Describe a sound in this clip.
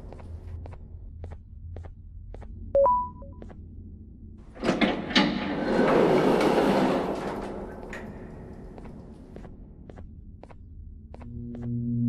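Footsteps tap steadily on a metal floor.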